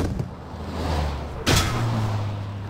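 A body thuds heavily onto the ground.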